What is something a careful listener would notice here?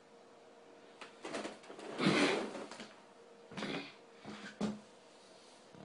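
Fabric rustles and thumps close by as a man gets up.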